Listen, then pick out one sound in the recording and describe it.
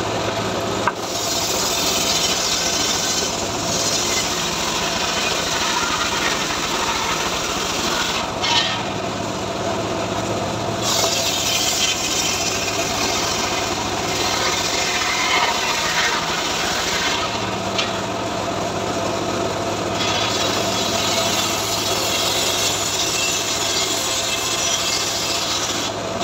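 A circular saw screams as it cuts through wood.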